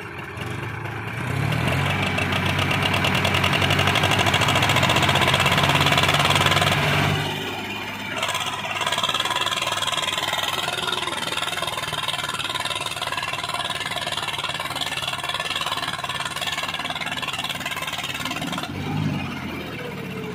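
A second tractor engine revs hard, straining as it pulls.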